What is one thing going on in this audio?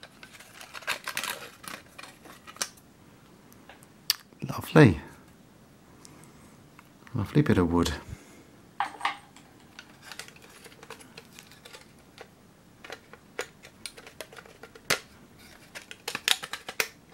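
A thin metal tin clicks and rattles as hands handle it.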